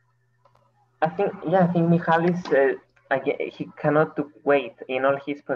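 A young man talks calmly over an online call.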